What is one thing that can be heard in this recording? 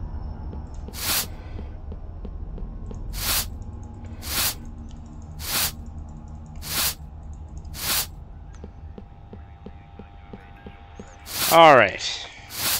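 A broom sweeps across a hard floor in short, brisk swishes.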